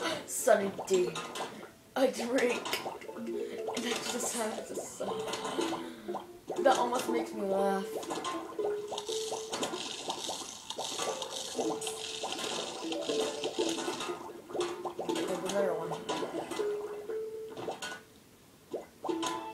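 Cheerful game music plays through a television loudspeaker.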